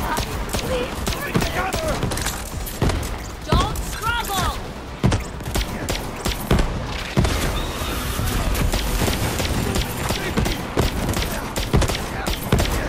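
Guns fire in rapid bursts, with sharp cracks and blasts.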